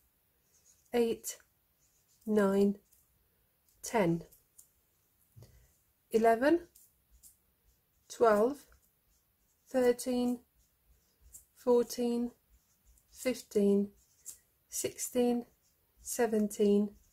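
A felt-tip marker squeaks and scratches on paper.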